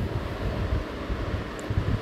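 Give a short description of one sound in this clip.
Water pours into a pan.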